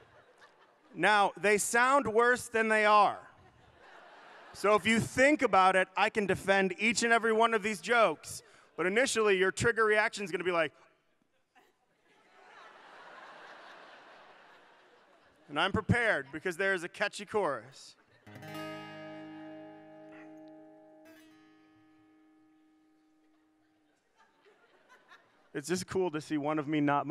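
A man speaks into a microphone with a lively, joking delivery.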